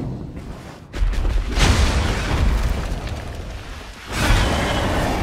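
A fiery explosion bursts with a loud roar.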